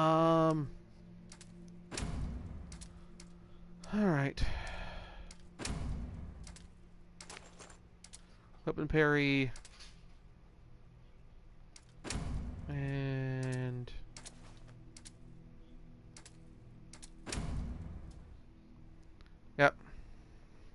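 Menu clicks and chimes sound as options are selected.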